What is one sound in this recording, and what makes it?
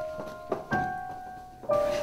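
Footsteps walk along a carpeted hallway.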